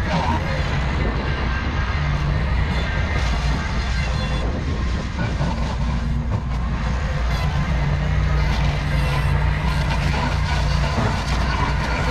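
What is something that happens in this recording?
A mower's blades shred and crackle through dry brush.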